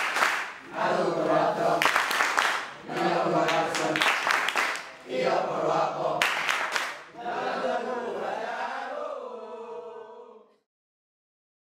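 A group of children sing together.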